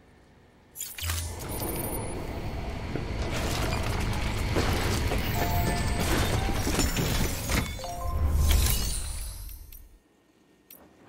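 Heavy footsteps thud and clank.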